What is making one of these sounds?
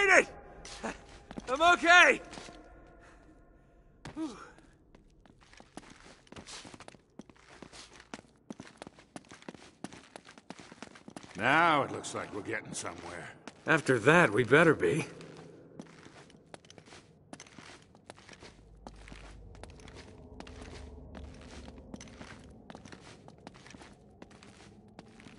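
Footsteps run on stone and echo.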